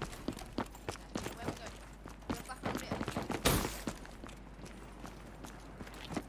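Footsteps thud quickly on a tiled roof.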